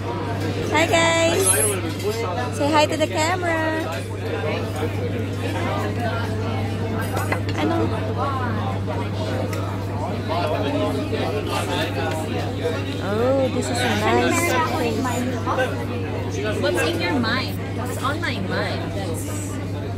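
Many diners chatter throughout a busy room.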